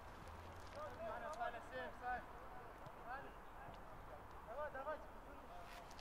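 Young men call out to each other across an open field outdoors.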